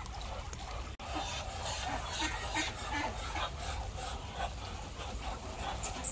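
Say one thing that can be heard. Many ducks hiss and call softly in a crowded flock.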